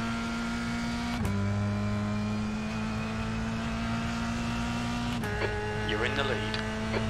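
A racing car engine drones at high revs and shifts up through the gears.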